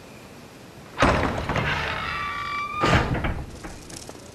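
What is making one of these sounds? A heavy iron gate creaks open and clangs.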